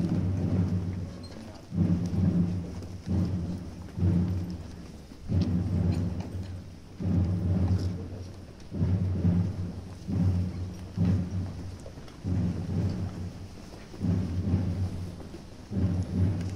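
A brass band plays a slow, solemn march in low, swelling phrases.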